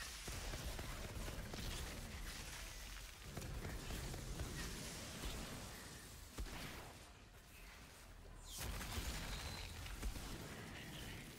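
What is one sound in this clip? A monster roars and growls.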